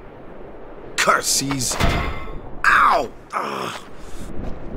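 A young man grumbles loudly in frustration.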